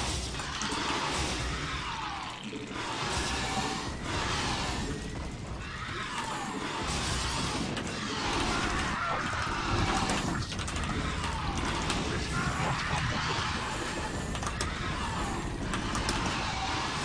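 Rapid gunfire and explosions rattle from a game battle.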